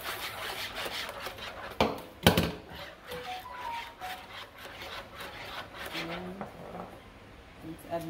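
A whisk clatters quickly against the sides of a bowl.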